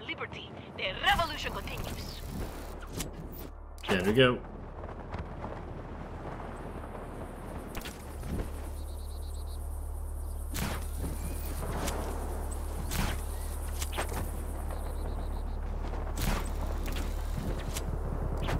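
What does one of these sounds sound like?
Wind rushes steadily past a gliding wingsuit flyer.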